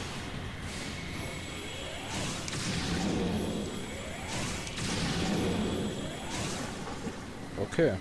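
Lava bubbles and rumbles with a low roar.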